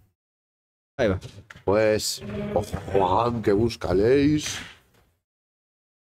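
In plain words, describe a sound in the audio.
A man talks loudly and with animation nearby.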